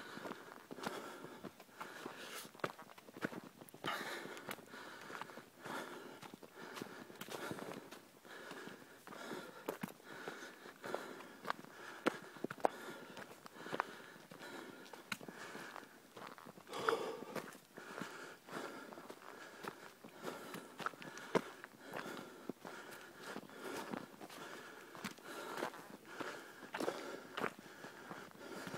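Footsteps crunch quickly over dry leaves and dirt.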